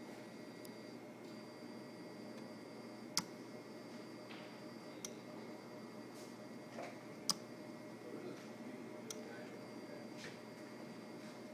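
A small machine hums steadily.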